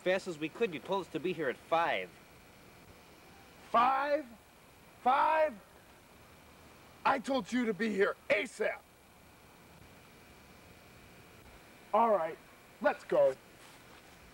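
Young men talk with each other outdoors, close by.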